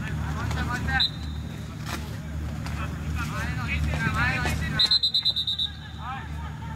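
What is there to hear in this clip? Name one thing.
A referee's whistle blows sharply with a short trill.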